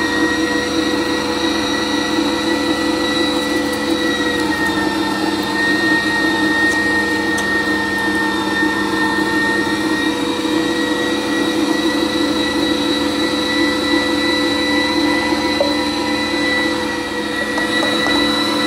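An electric meat grinder hums and whirs steadily.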